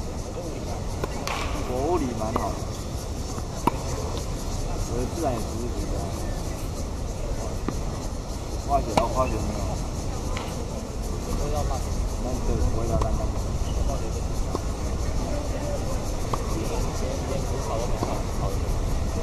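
Men's voices call out from a distance outdoors.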